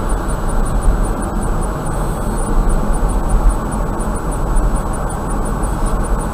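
A car drives steadily along a highway, with road and engine noise rumbling inside.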